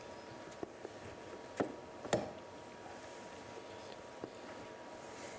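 Papers rustle and knock on a table nearby.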